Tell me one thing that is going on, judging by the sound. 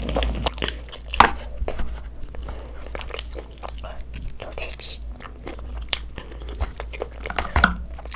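Chopsticks click against a plastic bowl close to a microphone.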